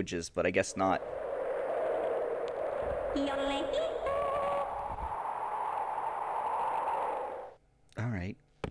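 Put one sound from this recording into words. A toy umbrella whooshes as it flies through the air.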